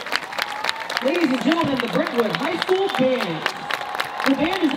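A crowd cheers and shouts excitedly.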